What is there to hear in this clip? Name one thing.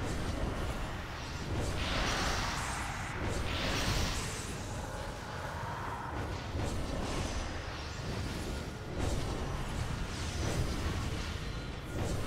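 Magic spells whoosh and crackle in a game.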